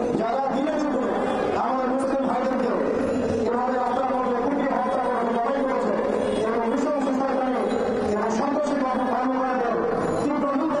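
A man speaks forcefully into a microphone over loudspeakers outdoors.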